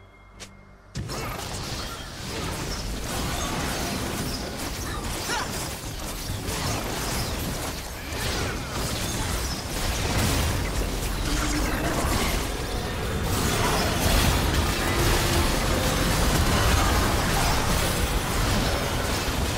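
Magic blasts and clashes of a fantasy battle game ring out in quick succession.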